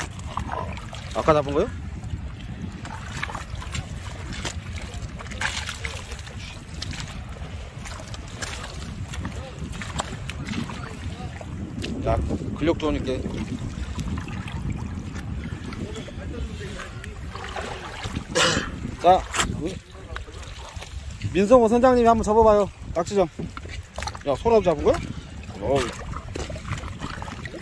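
Boots squelch and splash through wet mud and shallow water.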